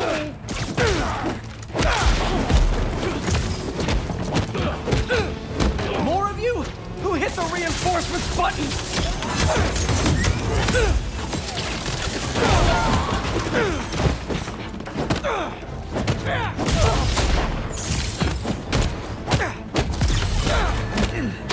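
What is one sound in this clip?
Punches and kicks land with heavy thuds in a fight.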